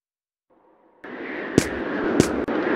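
Footsteps thud on dirt.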